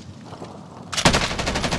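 A rifle fires a rapid burst of loud shots close by.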